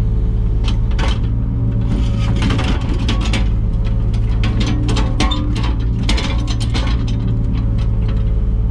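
A digger bucket scrapes and clanks against rubble.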